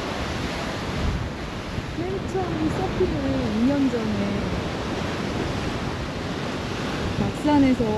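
Waves break and splash against rocks.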